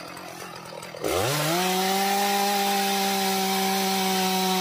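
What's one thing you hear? A chainsaw engine revs up and roars steadily while cutting wood.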